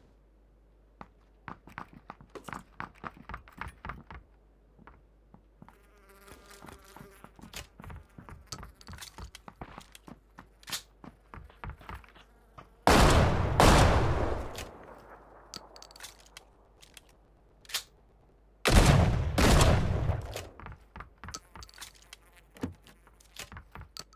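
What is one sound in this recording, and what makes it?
Footsteps tap and thud on a hard floor.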